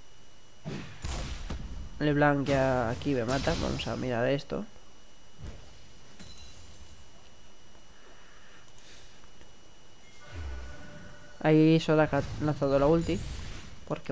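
Game spells burst and crackle during a fight.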